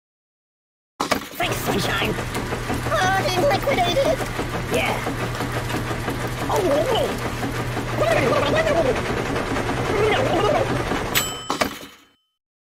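A washing machine drum spins and rumbles steadily.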